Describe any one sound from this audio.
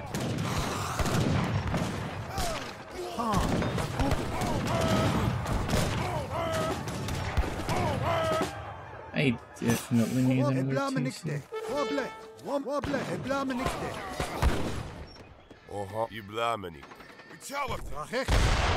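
Swords clash and guns fire in a battle.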